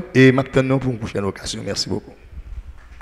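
A man speaks into a microphone, close and clear, in a calm voice.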